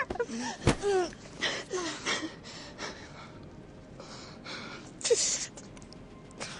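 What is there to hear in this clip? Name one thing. A young woman gasps and breathes heavily close by.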